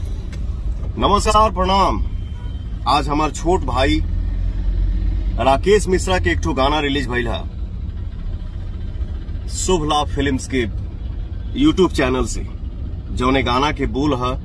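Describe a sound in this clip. A man talks close to a phone microphone, in a sad, pleading tone.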